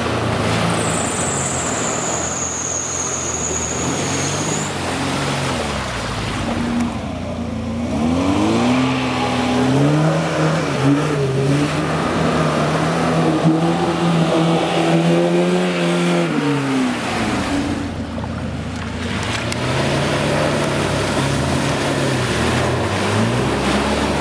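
An engine revs hard, rising and falling.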